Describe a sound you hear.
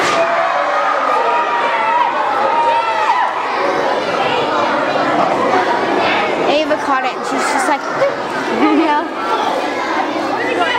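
A crowd of children and adults chatters and cheers loudly in a large echoing hall.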